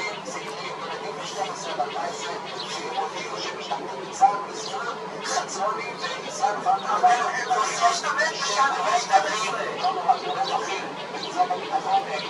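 A small bird chirps and calls close by.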